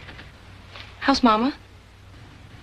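A young girl asks a short question, close by.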